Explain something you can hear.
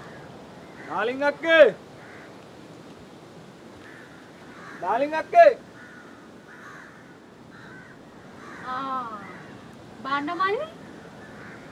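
A young man calls out loudly nearby.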